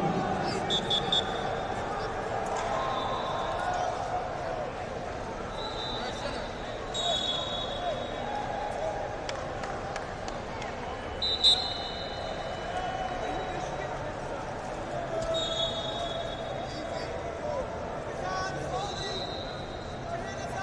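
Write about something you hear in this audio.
Referee whistles blow in short bursts.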